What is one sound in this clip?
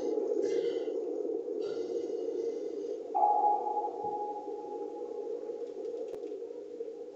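Water rushes and churns in a low, steady underwater rumble.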